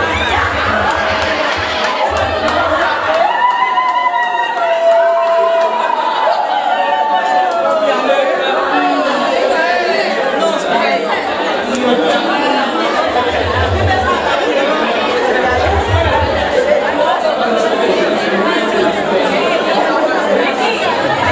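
A crowd of men and women chatter and call out excitedly in an echoing room.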